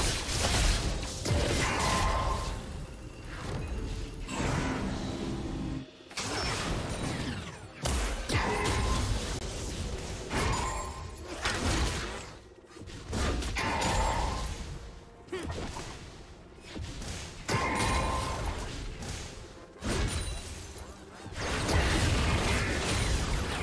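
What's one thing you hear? Weapon hits thud in a busy battle.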